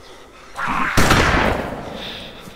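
A gunshot cracks loudly nearby.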